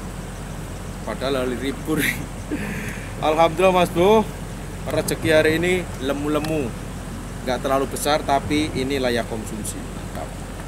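A man talks close to the microphone.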